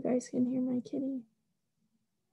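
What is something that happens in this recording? A young woman reads aloud calmly, close to the microphone.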